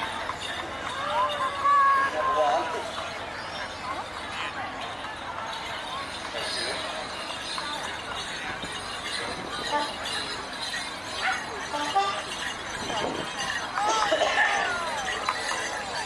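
Men call out loudly now and then.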